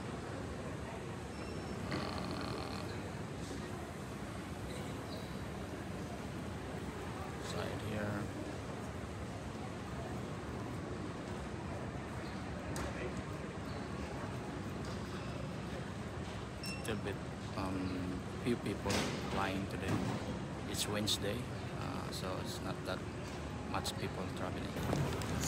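A large echoing hall hums with steady background noise.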